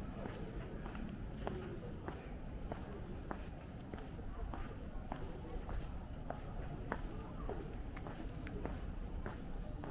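Footsteps tap steadily on pavement, close by.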